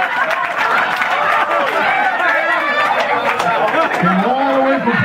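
A lively group of men and women talk and laugh loudly nearby.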